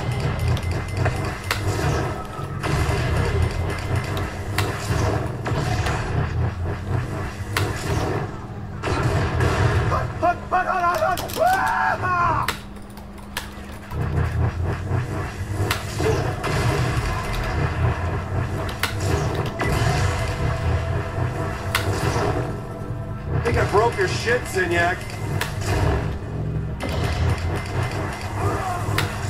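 Loud video game explosions and effects play from speakers.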